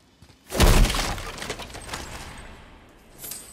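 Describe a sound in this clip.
A clay pot shatters into pieces with a loud crash.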